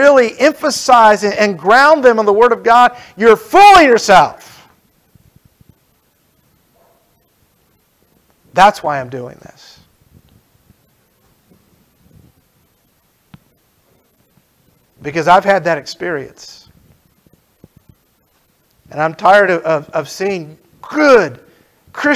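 A middle-aged man speaks with animation through a microphone, in bursts with long pauses.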